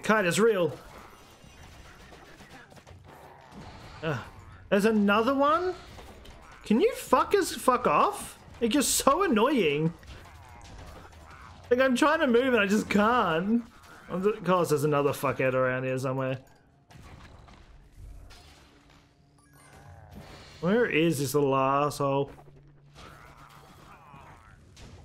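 Blows and magic blasts crash repeatedly in a fast game battle.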